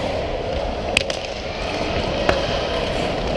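Hockey sticks clack against a puck and the ice.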